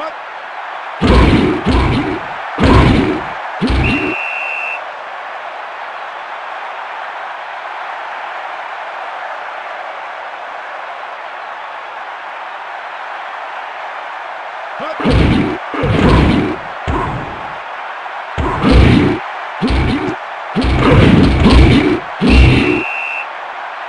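Football players collide with heavy thuds.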